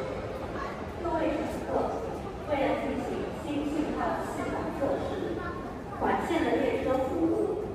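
People talk in the distance in a large echoing hall.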